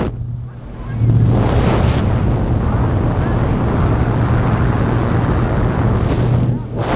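Strong wind rushes and buffets loudly during free fall.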